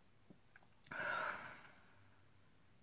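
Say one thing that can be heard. A young person sighs heavily.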